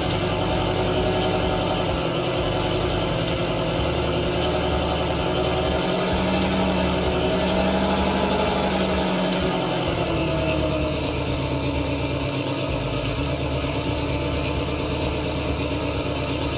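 A tank engine rumbles and revs steadily.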